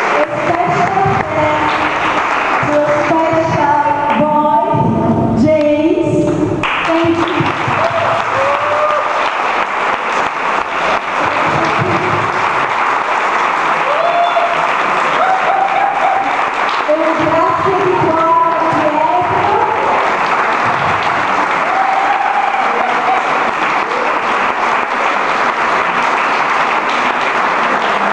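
An electric piano plays.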